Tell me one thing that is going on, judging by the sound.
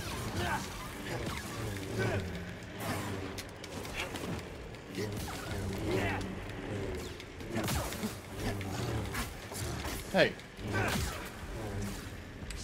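Creatures screech and snarl.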